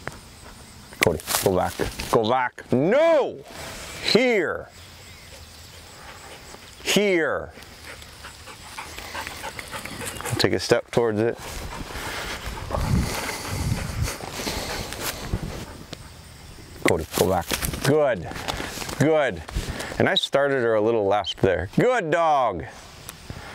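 A man speaks nearby in short, sharp commands.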